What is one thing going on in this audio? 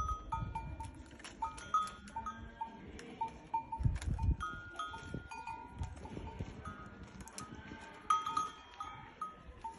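Leafy branches rustle as a camel tugs at them.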